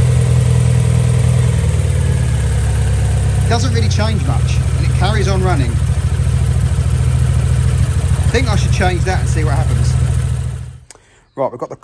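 A car engine idles with a steady low rumble close by.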